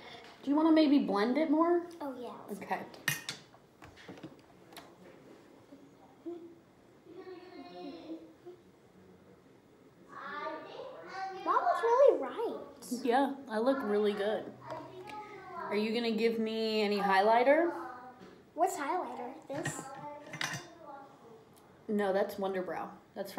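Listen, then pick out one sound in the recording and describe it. A young girl speaks in a high voice, close by.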